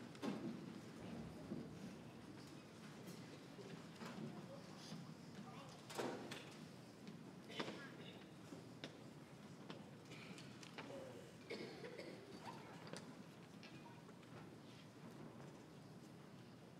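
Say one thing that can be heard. A choir of young voices sings in a large, echoing hall.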